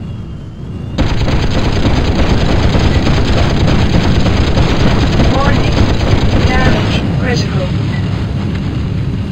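Explosions boom and rumble loudly.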